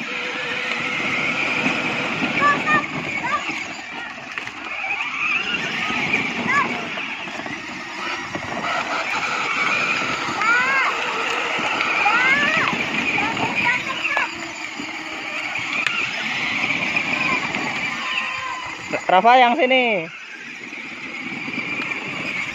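Plastic wheels rumble over rough concrete.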